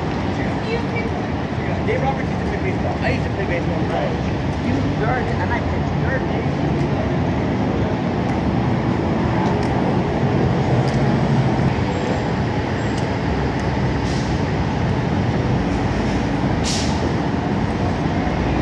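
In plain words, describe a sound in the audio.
City traffic rumbles steadily along a street outdoors.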